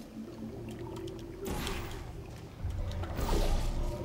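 A futuristic energy gun fires with short zaps.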